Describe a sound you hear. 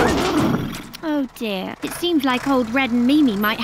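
A woman speaks in a high, playful cartoon voice, close to the microphone.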